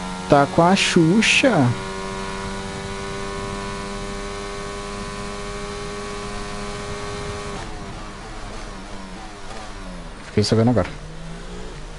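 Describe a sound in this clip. A racing car engine whines steadily at high revs, then drops in pitch as the car slows.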